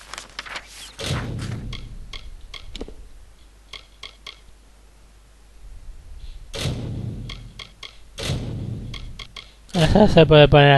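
Soft menu clicks and whooshes sound as pages change.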